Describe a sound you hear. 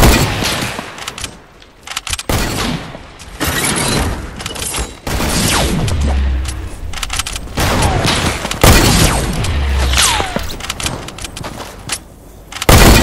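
Building pieces clatter and crack in quick bursts.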